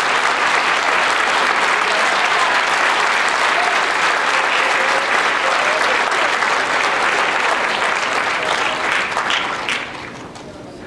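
An audience applauds loudly in a large hall, then the clapping dies away.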